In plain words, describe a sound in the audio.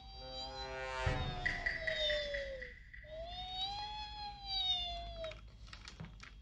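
Electronic game tones chime and swell.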